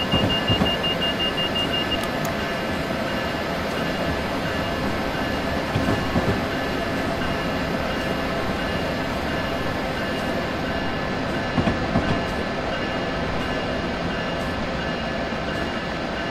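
A train rumbles steadily along the rails from inside the cab.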